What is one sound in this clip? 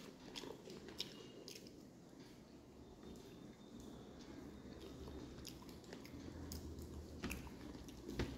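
Fingers squelch and mix rice on a plate.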